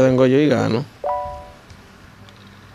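A short bright chime rings.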